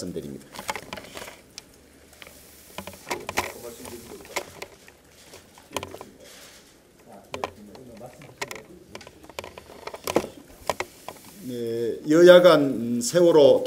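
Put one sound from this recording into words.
A middle-aged man speaks calmly into a microphone, then more firmly.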